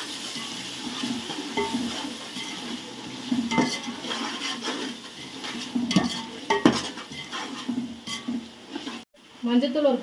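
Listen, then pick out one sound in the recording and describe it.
A metal ladle scrapes and clinks against a metal pot.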